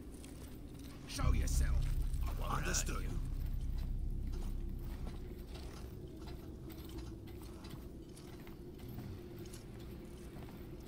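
Footsteps tread on stone and wooden floors.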